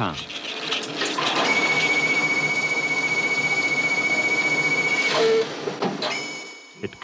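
An automated machine whirs steadily with a high whine.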